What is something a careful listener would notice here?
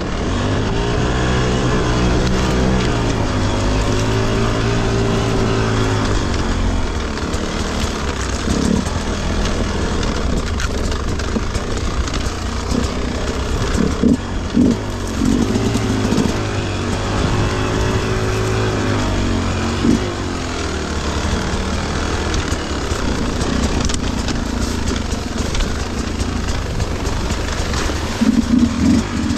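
A dirt bike engine idles and revs unevenly up close.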